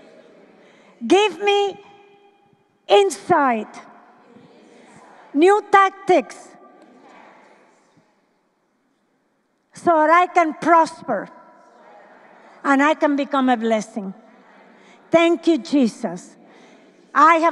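A middle-aged woman speaks with animation into a microphone, heard through loudspeakers in a large echoing hall.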